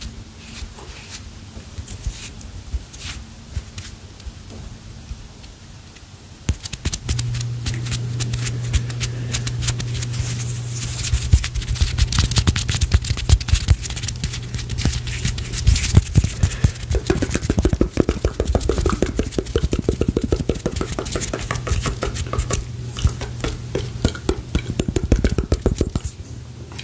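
Fingers rustle, tap and crackle right up close to a microphone.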